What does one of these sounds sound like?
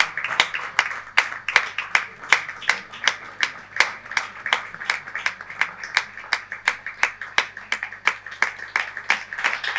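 An audience applauds steadily in a room.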